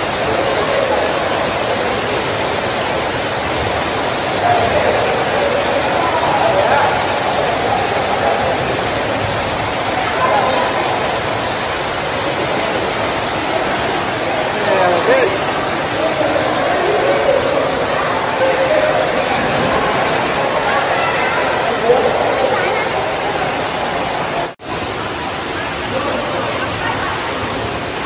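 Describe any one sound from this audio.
Children shout and chatter in a crowd around a pool.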